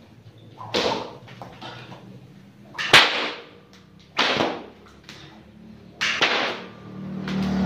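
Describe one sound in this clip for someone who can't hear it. A whip cracks sharply outdoors several times.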